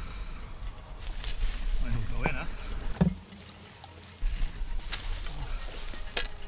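Grass and leaves rustle as someone pushes through them.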